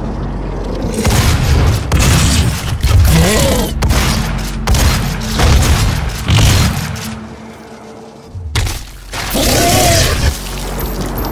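A shotgun fires blasts in a video game.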